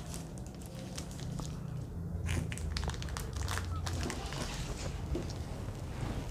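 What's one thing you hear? Plastic wrapping rustles and clicks as a machine is handled.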